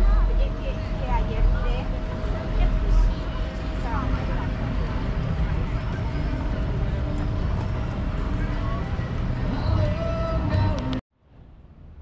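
People chat quietly nearby outdoors.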